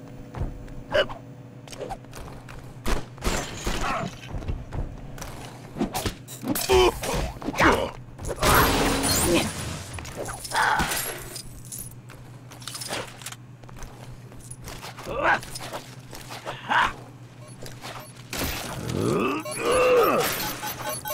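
Bright zapping blasts and sparkling chimes ring out in bursts.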